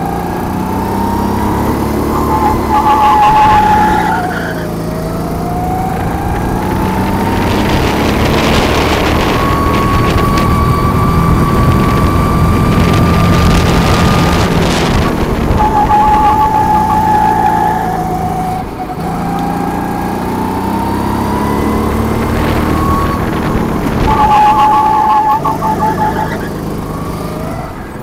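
A kart engine whines loudly, revving up and down through the corners.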